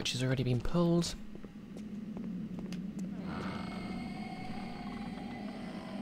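Footsteps echo on a stone floor.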